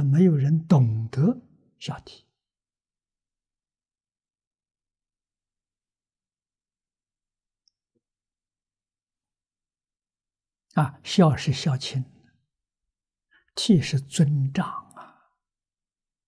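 An elderly man speaks calmly and slowly into a nearby microphone, with long pauses.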